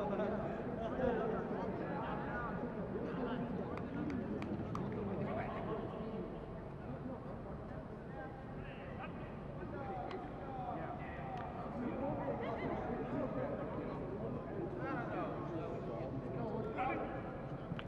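Several young men and women chat and call out outdoors.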